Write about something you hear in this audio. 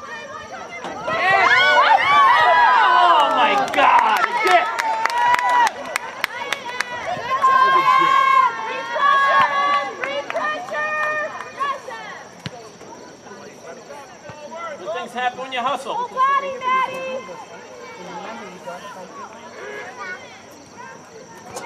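Spectators cheer and shout loudly outdoors.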